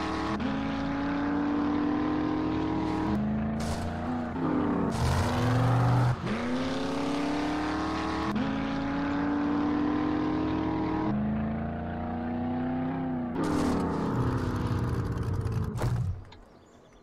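A vehicle engine drones and revs as it drives.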